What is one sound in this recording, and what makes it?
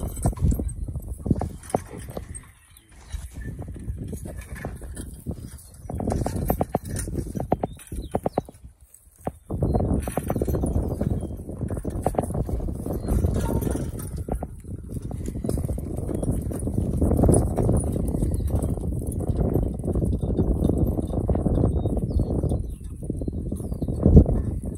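Mules' hooves thud on the ground as they walk.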